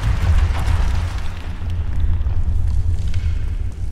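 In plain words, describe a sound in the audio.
A heavy wooden door swings shut with a thud.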